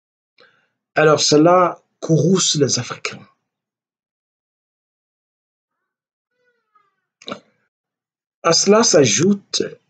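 An elderly man speaks calmly and close up, with long pauses.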